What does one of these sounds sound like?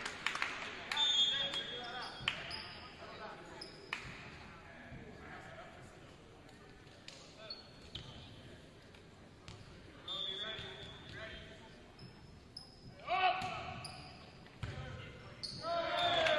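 Sneakers squeak on a gym floor in a large echoing hall.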